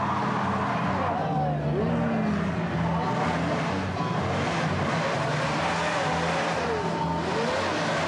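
Tyres squeal in wavering screeches on pavement.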